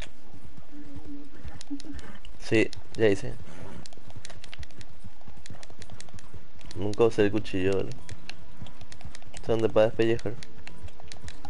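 Horse hooves clop steadily on a dirt path.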